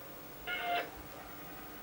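An old computer gives a short electronic beep.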